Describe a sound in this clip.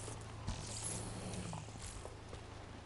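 A burst of energy crackles and sizzles.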